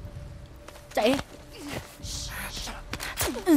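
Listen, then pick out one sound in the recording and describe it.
A young woman whispers close by.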